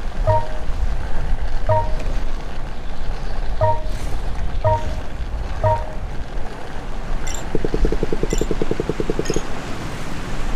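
Roller skates roll steadily along a smooth surface.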